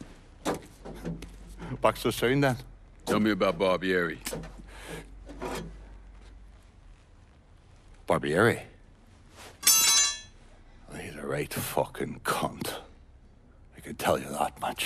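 A middle-aged man speaks in a gruff, casual voice.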